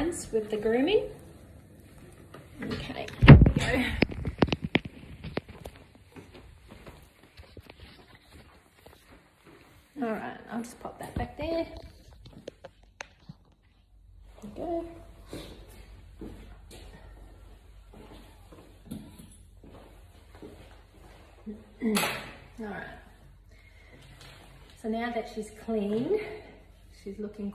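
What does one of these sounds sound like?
A middle-aged woman talks close by, in short, calm bursts.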